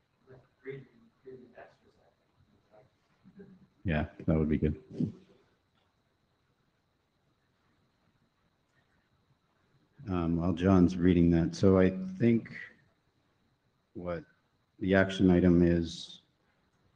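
A man speaks into a microphone in a calm, measured way, with pauses.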